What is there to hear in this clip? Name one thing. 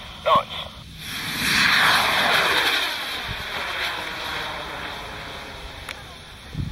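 A rocket roars loudly as it launches, then fades into the distance.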